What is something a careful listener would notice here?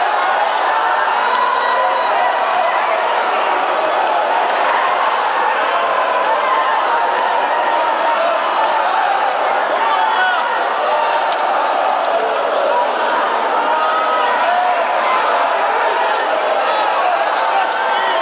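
A large crowd prays and cries out loudly in a big echoing hall.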